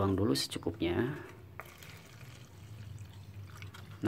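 Water pours from a plastic bottle into a plastic cup.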